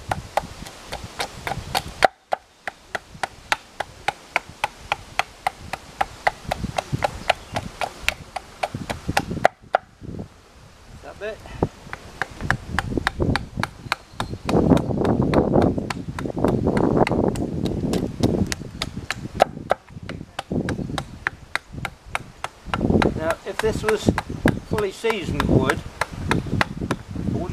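A small tool taps rapidly and steadily on wood.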